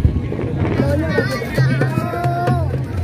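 A crowd of people chatters and cheers nearby.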